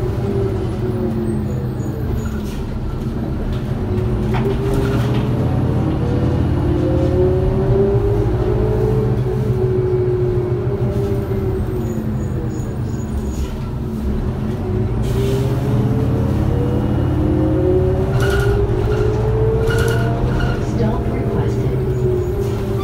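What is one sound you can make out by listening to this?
A bus rattles as it rolls over the road.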